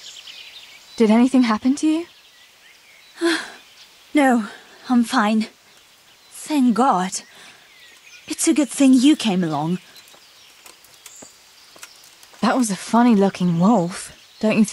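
A second young woman answers in a calm, quiet voice.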